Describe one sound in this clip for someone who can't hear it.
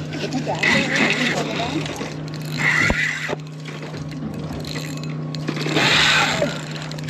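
A fishing reel whirs as line is handled.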